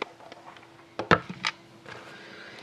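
A hand taps on a cardboard box.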